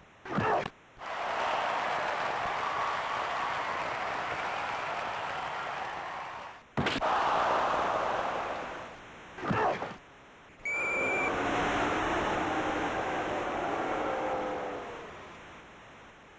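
A crowd roars and cheers in a large arena.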